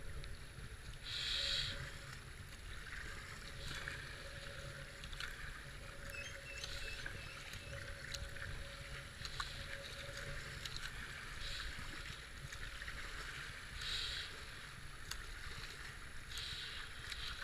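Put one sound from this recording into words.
A kayak paddle splashes into the water in regular strokes.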